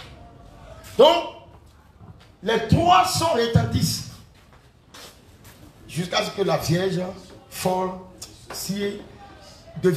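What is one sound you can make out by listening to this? A young man speaks with animation into a microphone, heard through a loudspeaker.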